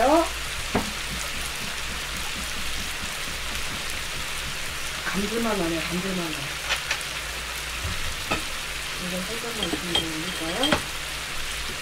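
A young woman speaks close to a microphone in a soft, animated voice.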